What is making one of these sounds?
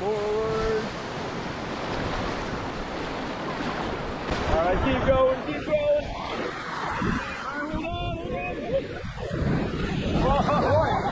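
River rapids rush and churn loudly outdoors.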